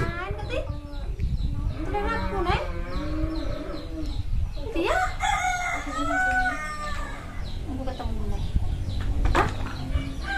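Several women talk with animation close by.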